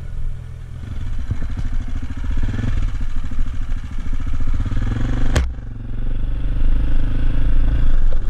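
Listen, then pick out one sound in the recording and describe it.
Motorcycle tyres rattle and thump over loose wooden planks.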